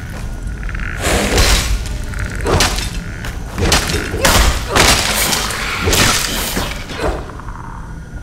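Swords clash and slash in quick bursts of combat.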